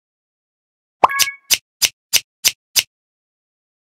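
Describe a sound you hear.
Scissors snip several times in quick succession.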